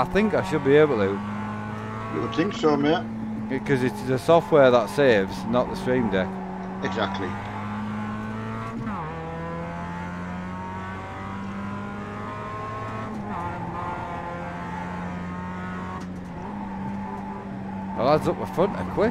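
A racing car engine drones steadily and changes pitch as gears shift.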